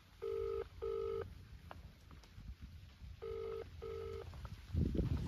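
A phone beeps twice, then twice again.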